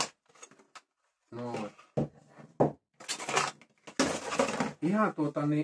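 Cardboard packaging rustles and scrapes.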